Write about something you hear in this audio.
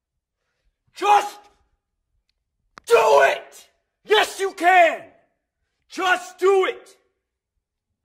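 A man shouts forcefully.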